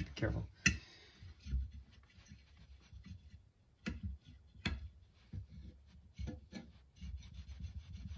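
A metal tool scrapes against leather.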